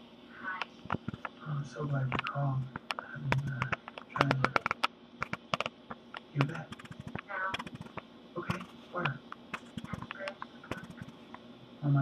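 Fingers tap on a hard plastic casing.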